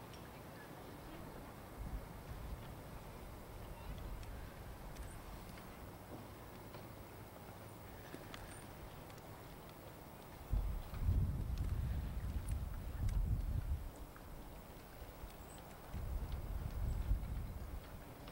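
Water laps gently against a floating dock.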